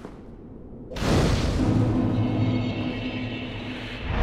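A fire whooshes alight and then crackles steadily.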